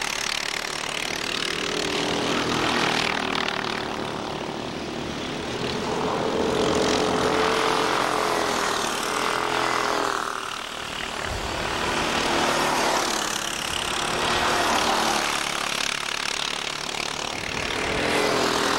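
Kart engines buzz loudly and rev up and down as karts race past.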